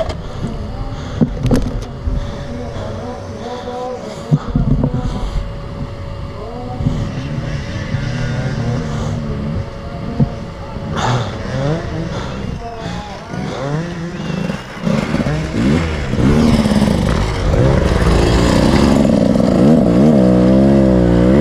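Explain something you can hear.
A dirt bike engine idles and revs nearby, growing louder as a motorbike pulls up close.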